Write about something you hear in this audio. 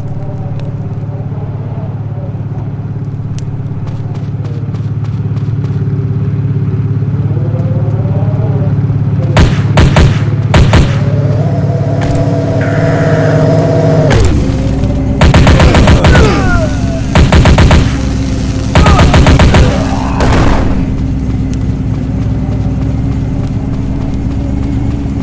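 Vehicle engines hum and rumble steadily.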